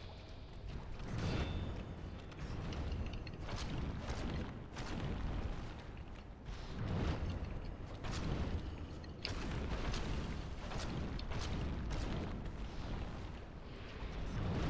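Heavy thuds and crashes boom again and again.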